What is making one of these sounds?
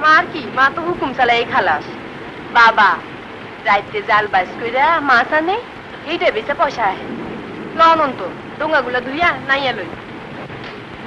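An older woman talks with animation nearby.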